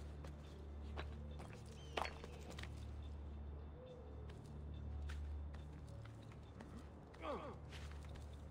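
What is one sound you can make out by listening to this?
Footsteps thud and scrape on roof tiles and stone as someone climbs.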